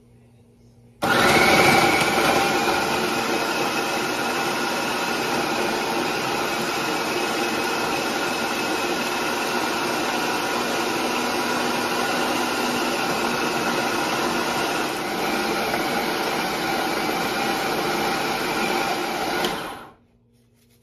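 A food processor motor whirs loudly and steadily, then stops.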